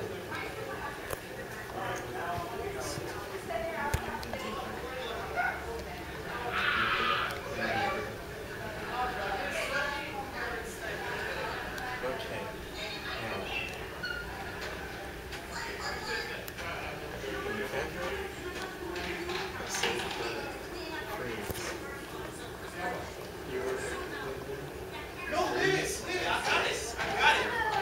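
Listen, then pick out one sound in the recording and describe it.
Several young people laugh and chatter close by.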